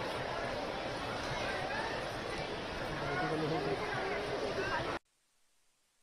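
A large crowd chatters and calls out at a distance outdoors.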